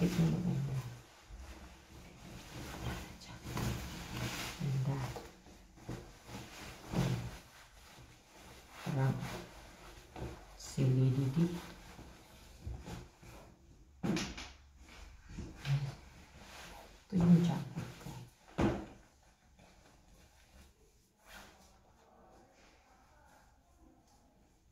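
Fabric rustles as a coat and scarf are handled.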